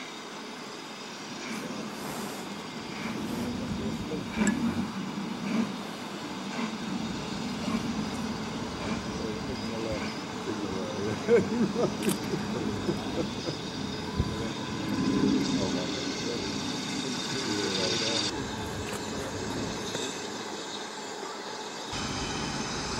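A steam locomotive chuffs steadily in the distance, growing louder as it approaches.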